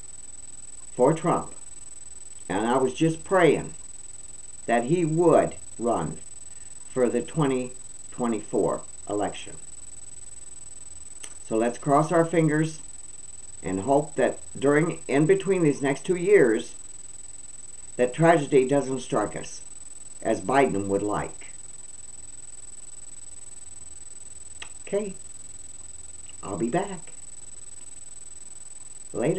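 An elderly woman speaks calmly and close to a microphone, with pauses.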